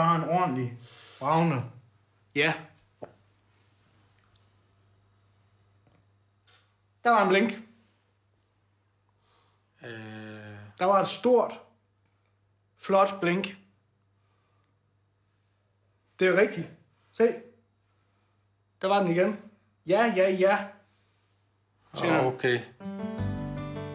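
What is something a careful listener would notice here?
A man speaks calmly nearby, in short phrases with pauses.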